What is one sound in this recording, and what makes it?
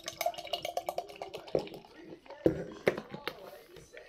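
Beer glugs and fizzes as it is poured into a glass.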